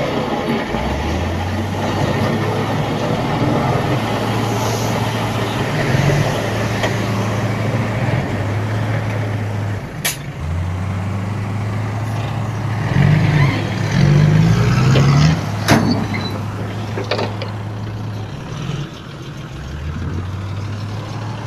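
A truck drives off over rough ground.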